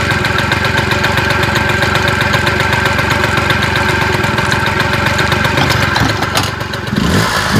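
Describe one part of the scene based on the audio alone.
A small motorbike engine idles close by with a fast rattling putter.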